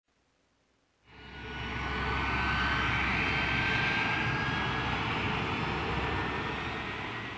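A jet engine roars and whines steadily close by.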